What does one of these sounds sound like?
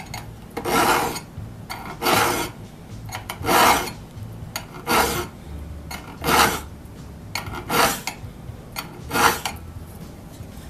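A metal file rasps against steel in slow, regular strokes.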